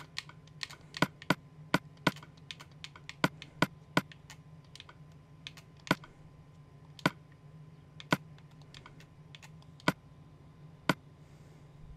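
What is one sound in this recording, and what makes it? Soft game menu clicks pop as items are moved between slots.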